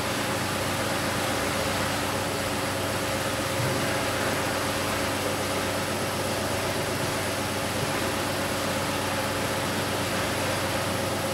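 Water and air rush steadily through a pipe.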